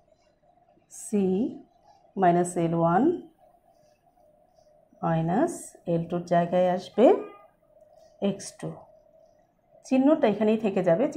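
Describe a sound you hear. A woman speaks calmly and clearly, close by, in short bursts.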